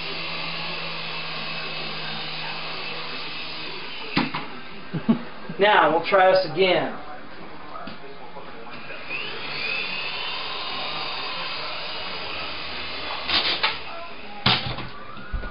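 A toy helicopter's rotor whirs steadily nearby.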